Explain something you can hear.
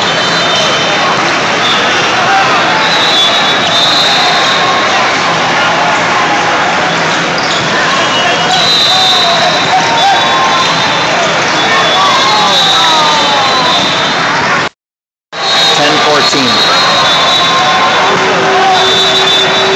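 A crowd of spectators murmurs and cheers in a large echoing hall.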